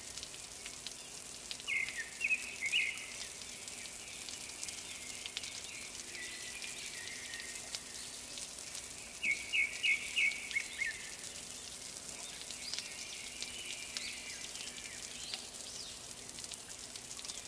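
Wind rustles tree leaves outdoors.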